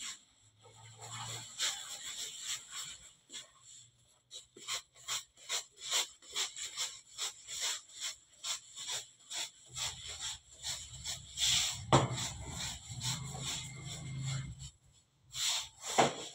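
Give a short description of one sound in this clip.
Soft dough slaps and pats against a table again and again.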